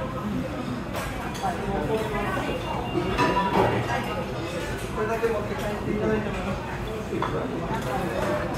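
Many people chatter in the background of a busy room.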